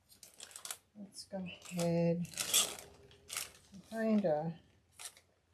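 An adult woman speaks calmly close by.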